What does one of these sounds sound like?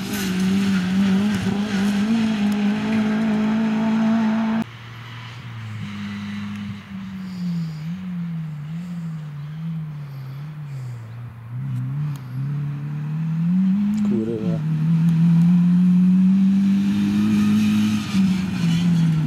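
A rally hatchback races at full throttle, its engine revving hard through gear changes.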